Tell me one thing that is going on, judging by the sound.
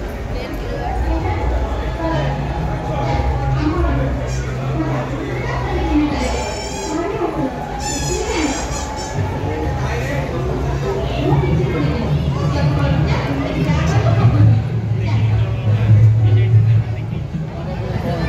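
A crowd of people chatter nearby in an echoing hall.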